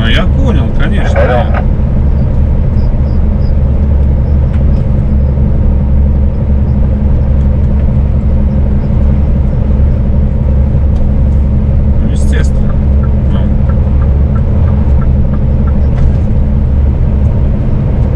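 Tyres rumble steadily on a paved road.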